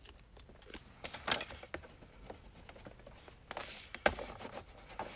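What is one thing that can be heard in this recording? A tool scrapes firmly along paper.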